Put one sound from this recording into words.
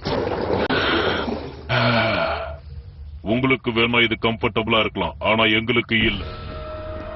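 A creature growls and speaks in a deep, rough voice.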